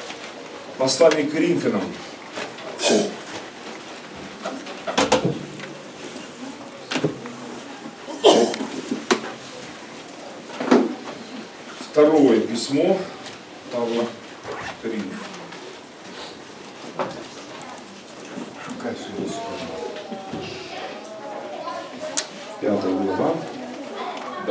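A man speaks into a microphone over loudspeakers, in an echoing hall.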